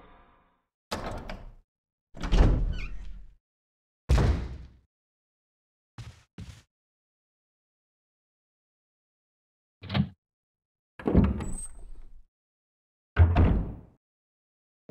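A heavy wooden door creaks open and thuds shut.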